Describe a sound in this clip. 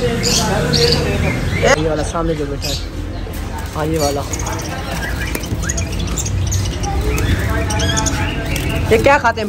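Small birds chirp and twitter close by.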